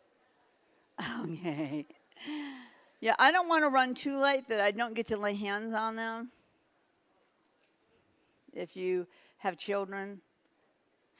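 A woman speaks expressively through a microphone.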